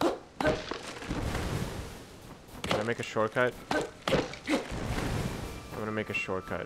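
Heavy blows thud into a wooden stump.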